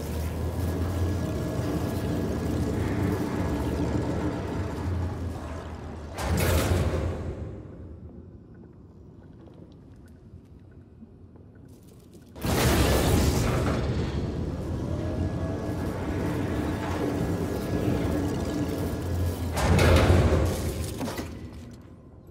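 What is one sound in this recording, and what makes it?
Electricity crackles and buzzes steadily.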